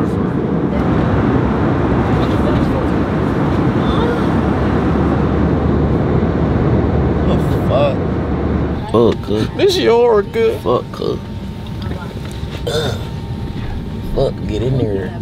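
A steady low engine roar fills an aircraft cabin.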